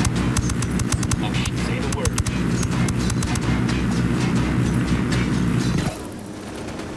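A helicopter's rotor thumps loudly and steadily, close by.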